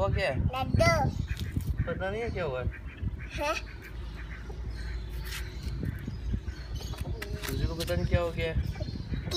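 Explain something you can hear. A chick chirps loudly and repeatedly close by.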